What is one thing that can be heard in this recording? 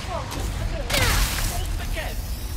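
An explosion bursts loudly and debris scatters.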